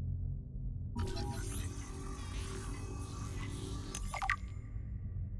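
A handheld scanner hums and chirps while it scans an object.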